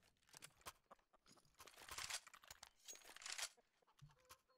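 A rifle is drawn with a short metallic clatter.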